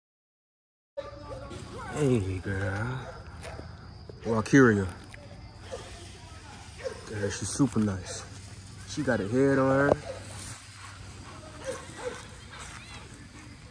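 A dog pants heavily close by.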